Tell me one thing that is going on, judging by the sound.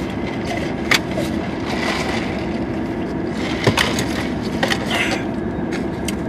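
Two men slurp drinks through straws.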